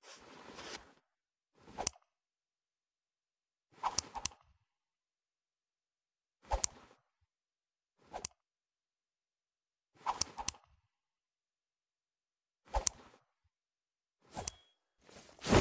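A game character throws something again and again, each throw making a short swish.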